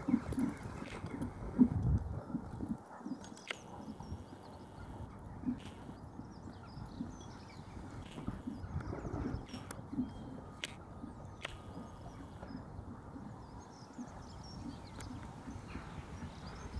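A horse's hooves thud rhythmically on soft sand as it trots.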